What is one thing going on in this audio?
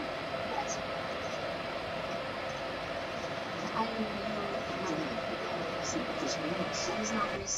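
A train rumbles steadily along the track, heard from inside the cab.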